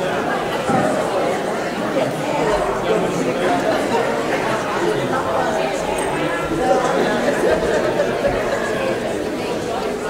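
Many men and women chat and greet each other at once in a large echoing room.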